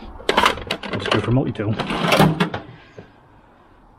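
Metal tools clatter in a drawer.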